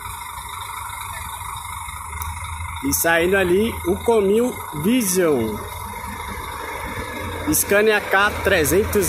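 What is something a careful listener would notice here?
A bus engine rumbles steadily as the bus pulls slowly away.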